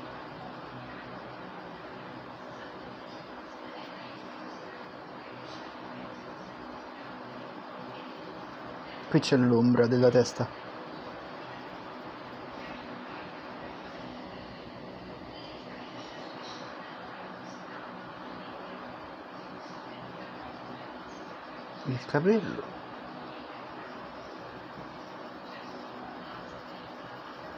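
A pencil scratches and shades softly on paper.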